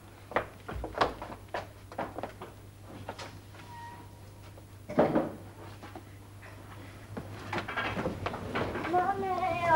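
Dishes clink and knock in a sink.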